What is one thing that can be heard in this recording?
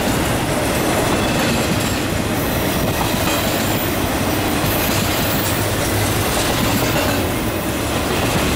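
A freight train rumbles past loudly and steadily, close by.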